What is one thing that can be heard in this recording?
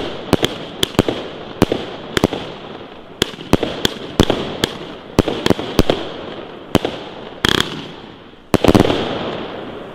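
Fireworks burst with sharp bangs one after another.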